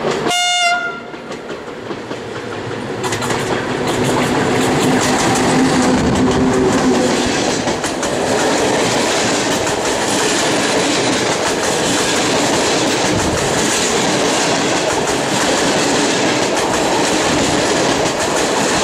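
An electric train rushes past close by, its wheels clattering loudly on the rails.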